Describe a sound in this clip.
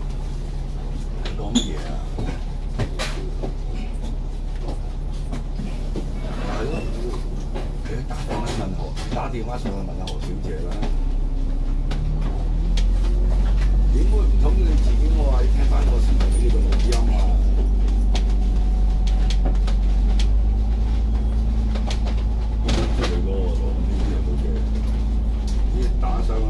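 A bus engine rumbles low and steady, growing louder as the bus pulls away.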